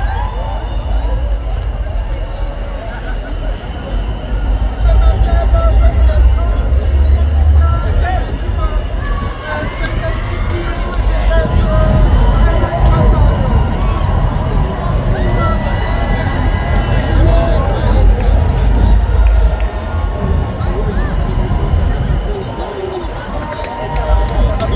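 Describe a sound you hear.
A crowd of people chatter and call out all around, outdoors.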